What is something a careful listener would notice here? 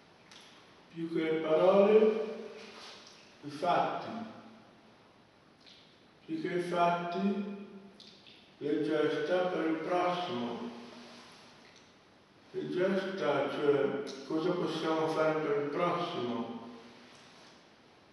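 A man sings loudly in a large echoing hall, in long held phrases.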